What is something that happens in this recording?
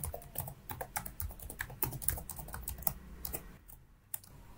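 Keys on a computer keyboard click rapidly as someone types.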